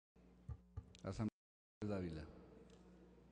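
An elderly man speaks briefly into a microphone in a calm voice.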